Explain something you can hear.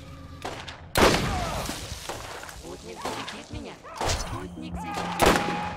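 A rifle fires loud, booming shots.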